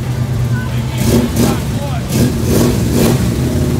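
A car engine revs loudly in bursts.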